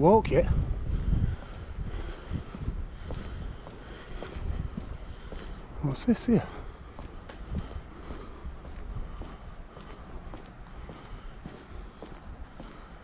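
Footsteps tread on a paved path.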